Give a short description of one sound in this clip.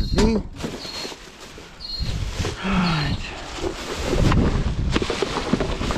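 A plastic bin bag rustles and crinkles as hands pull at it.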